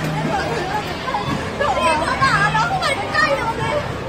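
A young woman laughs loudly nearby.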